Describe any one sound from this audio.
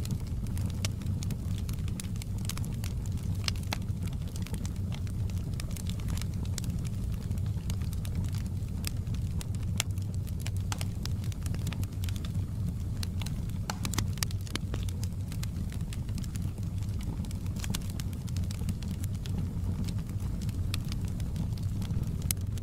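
Burning wood crackles and pops.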